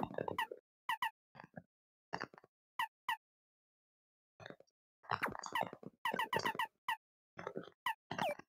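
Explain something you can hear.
Short electronic menu blips chime again and again as a cursor moves through a list.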